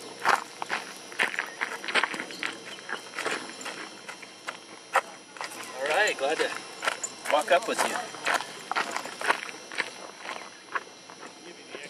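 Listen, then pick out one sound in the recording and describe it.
A man speaks with animation close by, outdoors.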